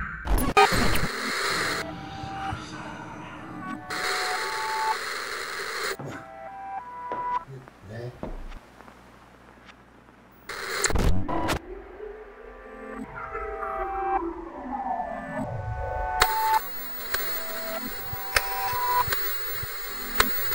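Television static hisses loudly in bursts.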